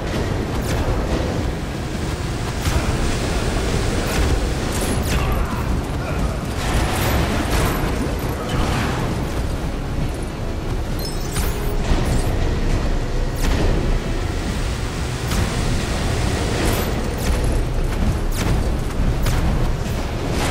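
A fiery beam hisses and roars steadily.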